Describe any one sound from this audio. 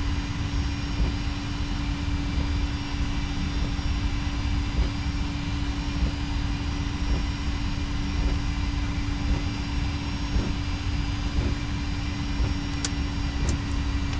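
Wheels thump rhythmically over runway joints.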